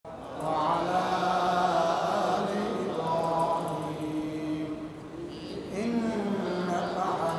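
A man chants in a slow, melodic voice through a microphone, in an echoing hall.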